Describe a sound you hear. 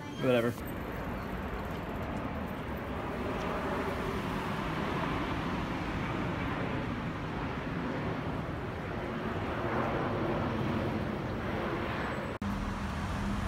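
A jet plane roars steadily overhead.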